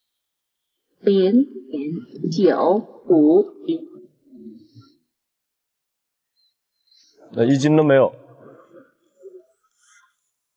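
A man speaks casually outdoors, close by.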